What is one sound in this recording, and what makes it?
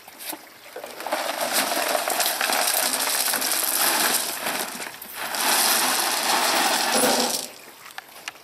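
Gravel pours from a bucket and rattles onto a heap of pebbles.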